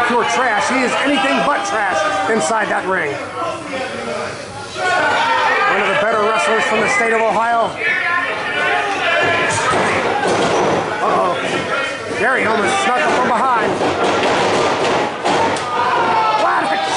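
A crowd of men and women cheers and shouts in a large echoing hall.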